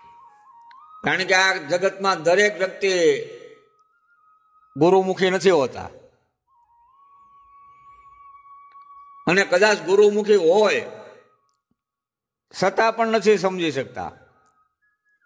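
A man sings loudly in short phrases.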